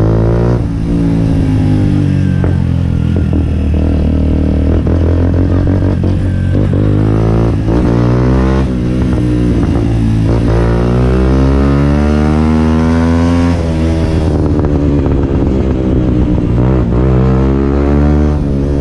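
A motorcycle engine roars close by, its pitch rising and falling as it revs and shifts gears.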